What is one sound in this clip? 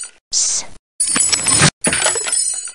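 Wooden crates crash and break apart.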